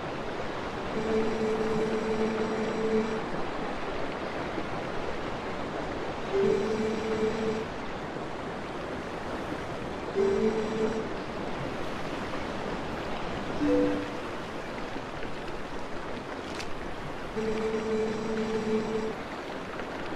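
Soft electronic tones chirp in short repeated bursts.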